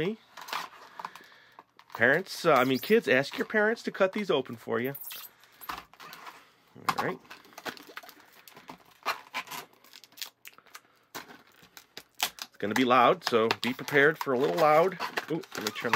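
Plastic packaging crinkles and crackles close by.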